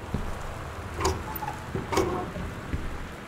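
A small cabinet door clicks and swings open.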